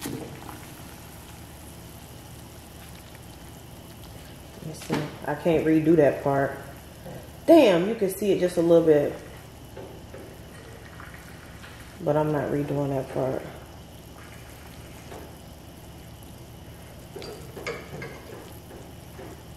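Water bubbles at a rolling boil in a pot.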